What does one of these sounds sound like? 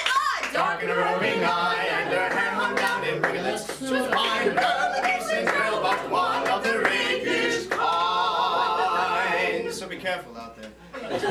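A man sings a lively tune.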